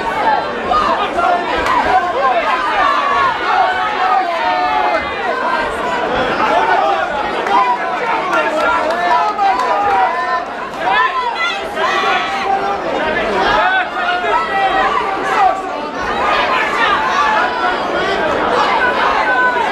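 A crowd chatters and shouts loudly in a large hall.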